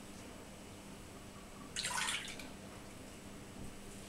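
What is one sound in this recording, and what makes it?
Milk pours into a glass bowl.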